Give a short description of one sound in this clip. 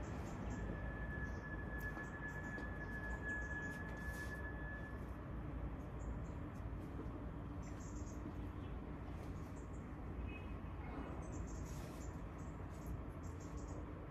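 Clothes and pegs rustle and click as laundry is hung on a line.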